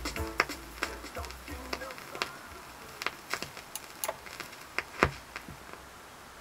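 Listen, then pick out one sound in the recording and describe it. A vinyl record crackles and pops sharply as it spins.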